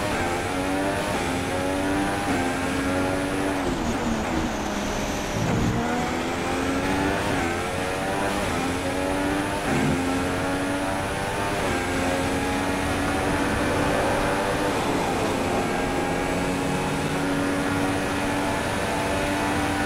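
A Formula One car's V6 turbo engine screams at full throttle, shifting up and down through the gears.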